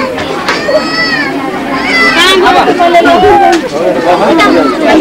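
A crowd of men and women chatter and call out loudly nearby.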